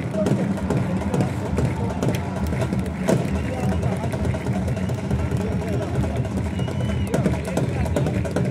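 A large outdoor crowd murmurs and chatters continuously.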